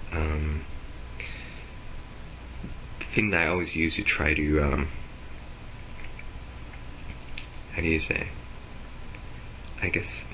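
A young man speaks in short bursts close to a webcam microphone.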